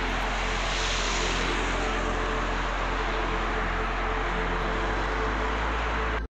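Traffic rushes past steadily on a busy multi-lane road.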